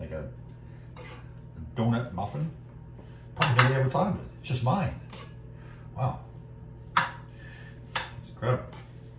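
A spoon scrapes and taps against a metal bowl.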